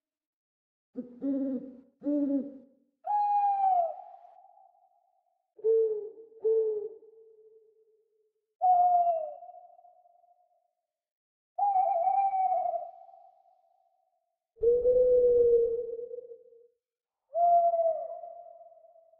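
An owl hoots repeatedly in short, falling calls that echo away.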